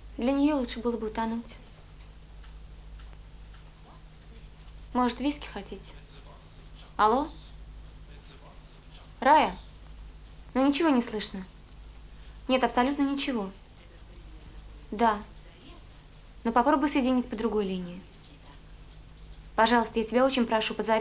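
A young woman speaks calmly into a telephone, close by.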